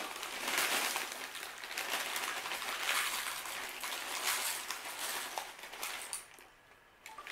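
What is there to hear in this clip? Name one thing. Dry cereal pours from a plastic bag into a ceramic bowl.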